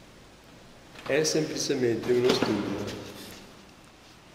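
An elderly man speaks in an echoing room.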